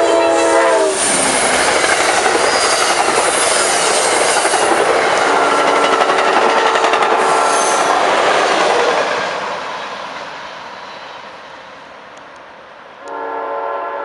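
A passenger train roars past close by, with a loud rush of wheels on rails, then fades away.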